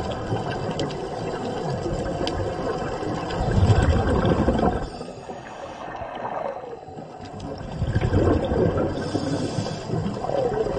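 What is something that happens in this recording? Air bubbles burble and rumble in bursts from divers breathing underwater.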